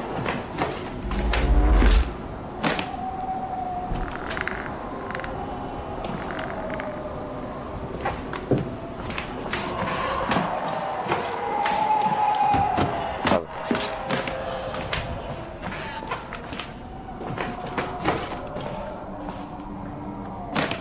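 Slow footsteps thud on a wooden floor.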